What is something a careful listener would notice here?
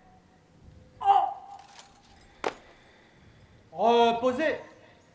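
A man shouts commands loudly outdoors.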